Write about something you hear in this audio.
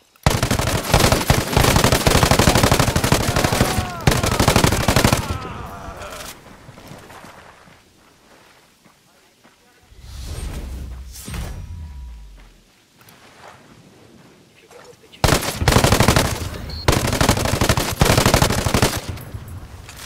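A heavy machine gun fires in long, loud bursts.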